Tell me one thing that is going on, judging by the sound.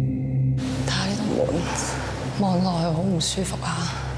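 A woman speaks quietly.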